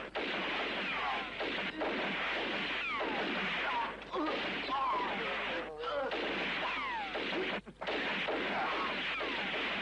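Pistol shots crack sharply.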